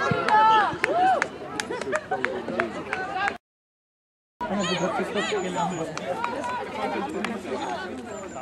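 A small crowd of spectators cheers and chatters nearby.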